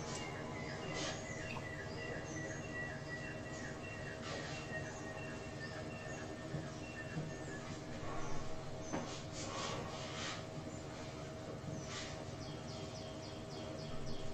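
A felt eraser rubs and squeaks across a whiteboard.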